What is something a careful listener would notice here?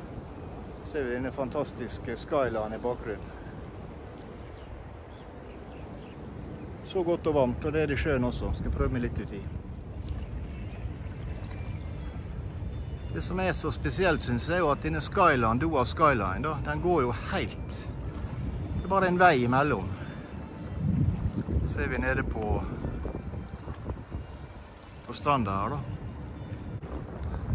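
A middle-aged man talks calmly and close up, in short bursts.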